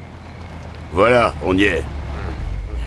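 A man speaks briefly in a low voice, close by.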